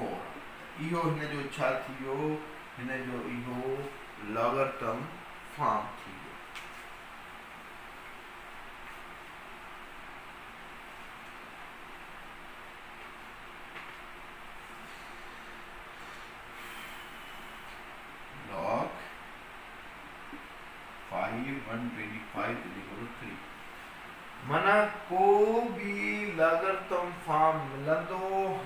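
A man lectures in a close, animated voice.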